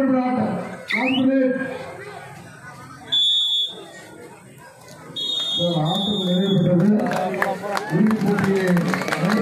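A crowd of men shouts and cheers loudly nearby.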